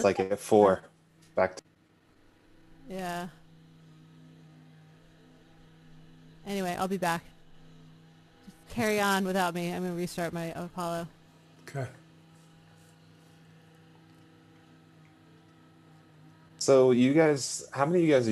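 A woman talks over an online call.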